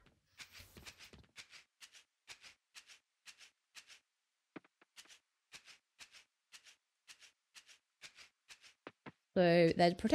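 Footsteps tap steadily on soft ground.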